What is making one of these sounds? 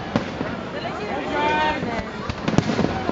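Fireworks whistle as they shoot upward.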